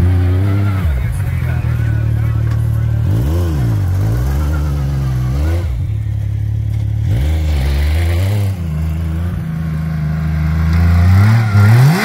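An off-road buggy engine idles and revs up and down nearby.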